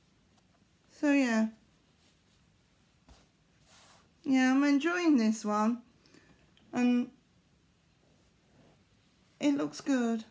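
A middle-aged woman speaks calmly and close by in short bursts.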